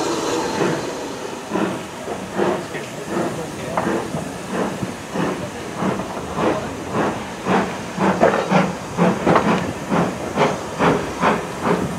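A steam locomotive chuffs in a steady rhythm that slowly quickens.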